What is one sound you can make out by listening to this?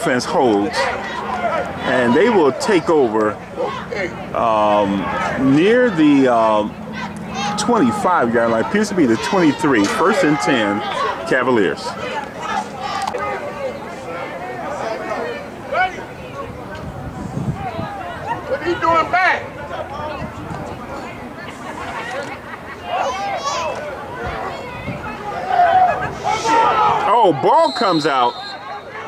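Young men shout and call out nearby outdoors.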